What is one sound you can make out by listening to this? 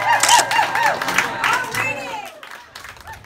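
A group of people cheers together.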